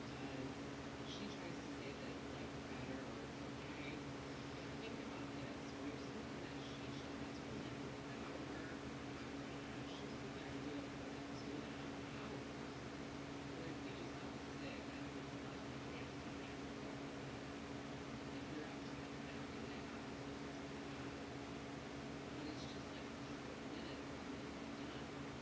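A young man speaks quietly into a microphone.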